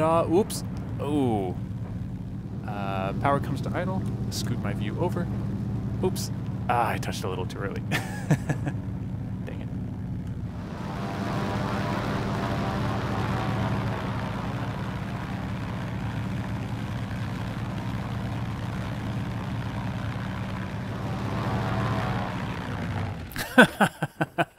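A small plane's propeller engine drones steadily.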